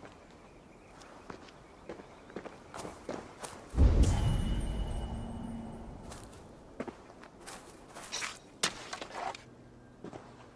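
Footsteps crunch through dry leaves and grass.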